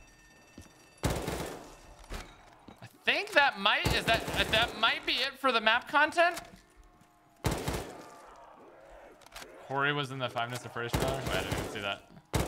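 Gunfire bursts out in short loud volleys.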